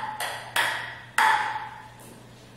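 A ping-pong ball bounces on a paddle in quick, even taps.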